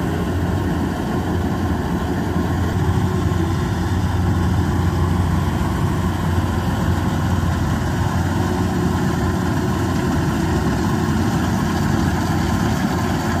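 Rice stalks rustle and swish as a combine harvester cuts through them.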